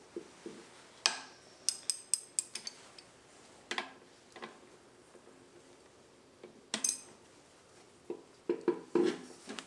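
Metal tools clink and clatter against an engine.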